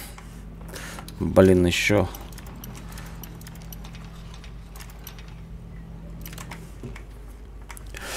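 A metal lock pick scrapes and clicks inside a door lock.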